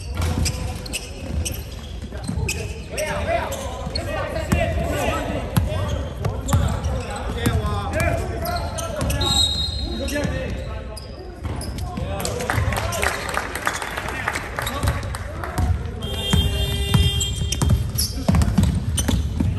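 Basketball shoes squeak sharply on a hard floor in a large echoing hall.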